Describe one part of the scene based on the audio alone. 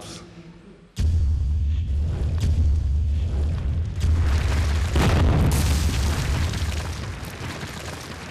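A stone wall cracks and crumbles apart with a deep rumble.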